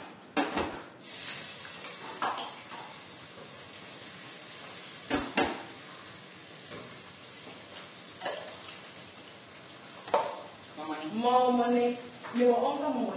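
A pot of stew bubbles and sizzles steadily.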